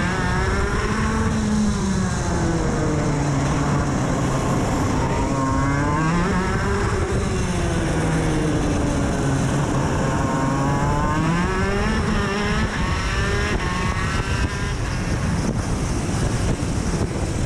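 A kart engine buzzes loudly close by, its pitch rising and falling as it speeds up and slows down.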